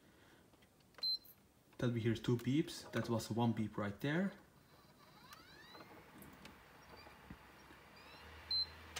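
An electronic device gives a short high beep.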